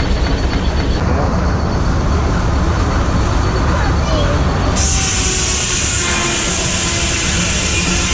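A sawmill engine rumbles steadily.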